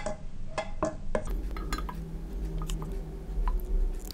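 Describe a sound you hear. A spoon drops puree into a glass jar with soft plops.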